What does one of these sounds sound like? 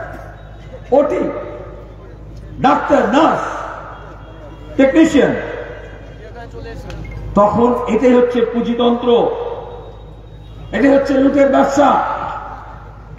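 A man speaks forcefully through a loudspeaker outdoors, with his voice echoing in bursts.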